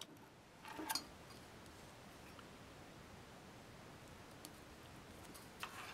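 Small plastic parts click and rustle softly between fingers.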